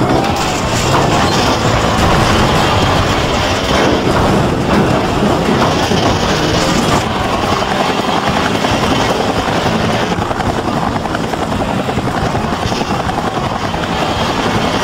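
A motorbike engine revs and whines steadily.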